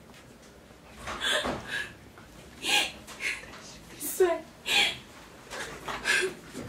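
A young woman answers in a raised voice.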